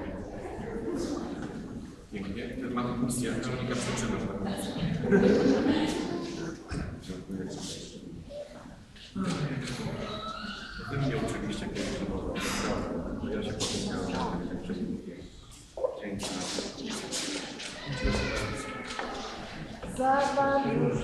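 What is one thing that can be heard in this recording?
A man speaks in a large echoing hall.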